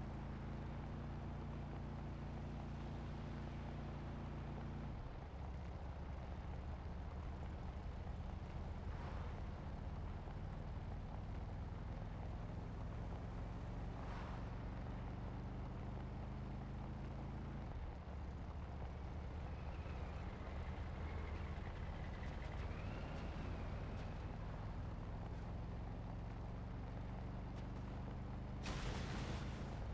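Tyres rumble over a gravel track.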